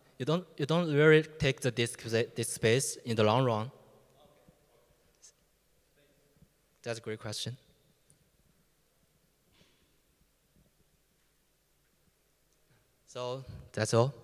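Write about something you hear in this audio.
A man speaks through a microphone in a large, echoing hall.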